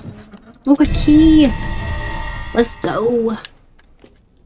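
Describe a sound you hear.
A young woman speaks with animation into a microphone close by.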